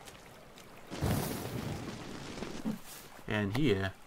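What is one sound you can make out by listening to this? A lighter flame flares up with a soft whoosh.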